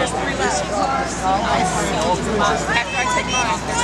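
A middle-aged man speaks firmly to people close by.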